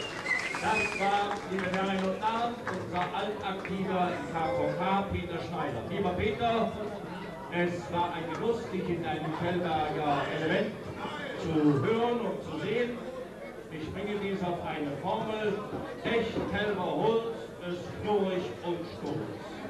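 A crowd of people chatters and calls out close by.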